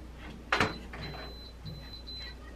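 An oven timer beeps as a dial is turned.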